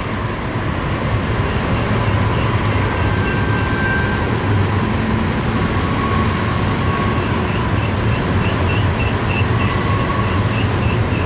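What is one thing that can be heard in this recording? A diesel locomotive engine rumbles loudly as it draws closer.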